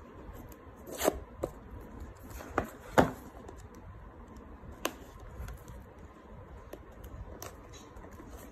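Fingers scrape and tap against a cardboard box, with sharp clicks now and then.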